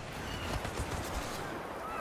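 An explosion bursts close by.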